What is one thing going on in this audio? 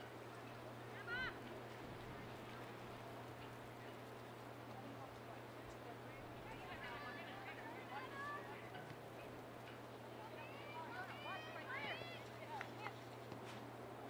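Young women shout to each other across an open field in the distance.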